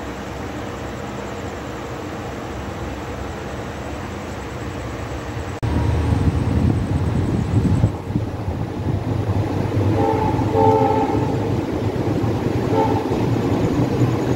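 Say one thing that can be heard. A passenger train coach rumbles as the train pulls away, wheels clattering on the rails.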